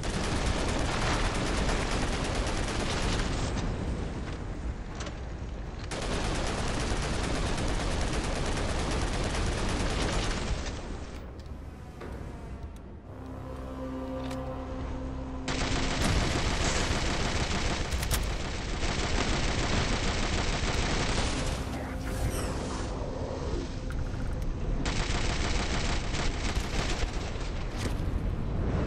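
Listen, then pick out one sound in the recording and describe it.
Automatic gunfire rattles rapidly and loudly.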